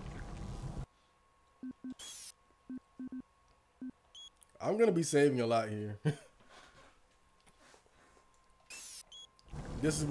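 Short electronic menu blips sound.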